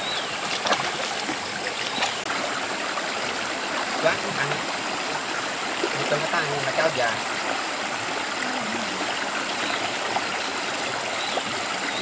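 Water splashes as feet wade through a shallow stream.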